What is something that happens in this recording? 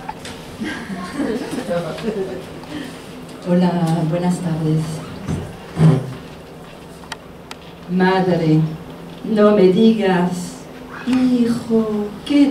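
A woman declaims with animation into a microphone, heard over a loudspeaker.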